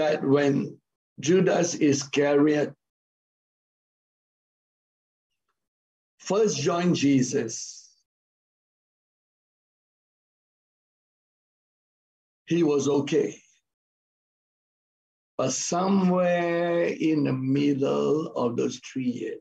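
A middle-aged man speaks with animation over an online call, pausing between phrases.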